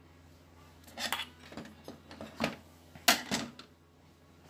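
A circuit board knocks and rattles as it is handled.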